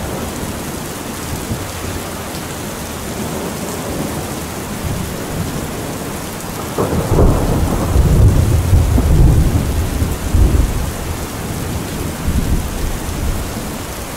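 Heavy rain pours steadily onto a metal roof.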